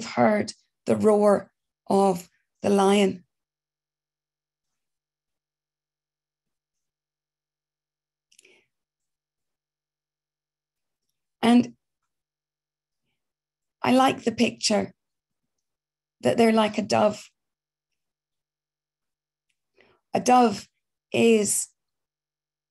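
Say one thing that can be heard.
A middle-aged woman speaks calmly and warmly over an online call, in short phrases with long pauses.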